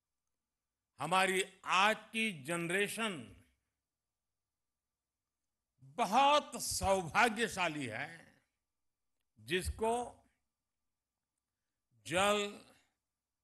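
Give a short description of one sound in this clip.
An elderly man speaks slowly and emphatically into a microphone, with long pauses.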